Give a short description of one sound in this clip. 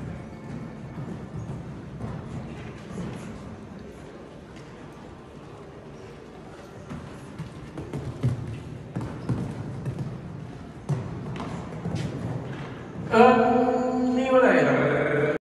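Hooves thud on soft sand as a horse canters.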